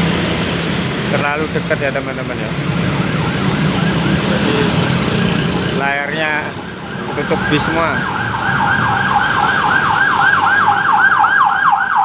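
Motorbikes and cars drive past on a road.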